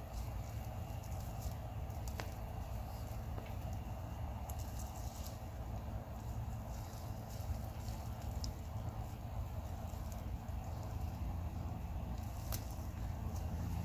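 Soil crumbles and roots rustle as a plant is pulled from the ground by hand.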